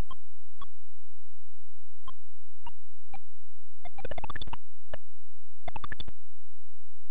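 Short electronic game blips sound at irregular moments.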